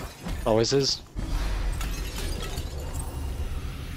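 Crystal shatters and clatters into pieces.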